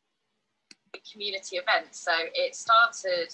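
A middle-aged woman speaks cheerfully through an online call.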